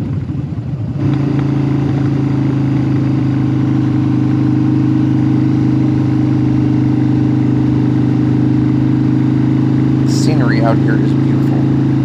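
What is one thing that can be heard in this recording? A motorcycle engine drones steadily at cruising speed.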